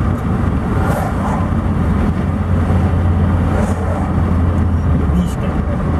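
A truck passes by in the opposite direction.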